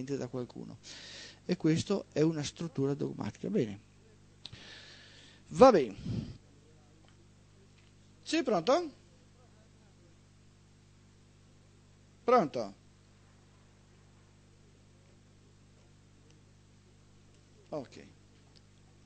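A middle-aged man speaks into a microphone in short bursts with pauses.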